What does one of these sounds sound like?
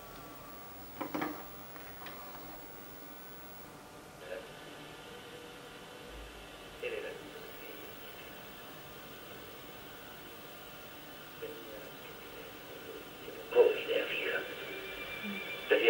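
Short electronic bursts of beeps and crackles come from an old home computer now and then.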